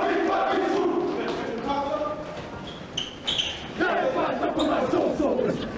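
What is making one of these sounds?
A group of men chant and shout loudly together.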